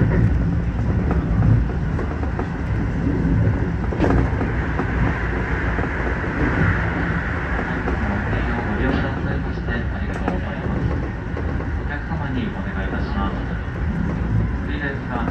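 A train rumbles steadily along the tracks, heard from inside the cab.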